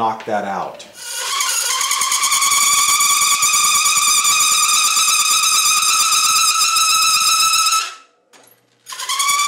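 A drill press whines steadily as it spins a hole saw.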